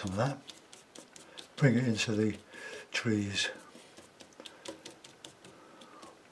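A stiff brush dabs and taps lightly on a canvas.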